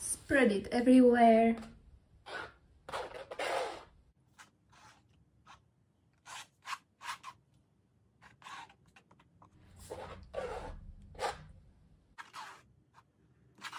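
A plastic scraper smears wet paint across a board with soft scraping.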